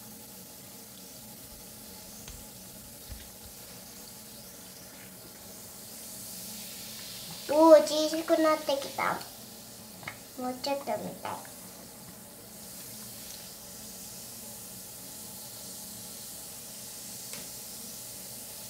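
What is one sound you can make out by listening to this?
Water fizzes softly as a bath bomb dissolves.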